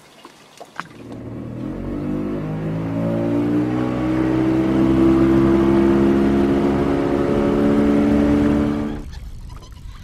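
An outboard motor drives a boat across a lake.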